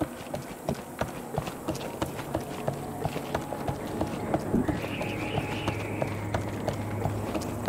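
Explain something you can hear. Footsteps tap quickly across wooden planks.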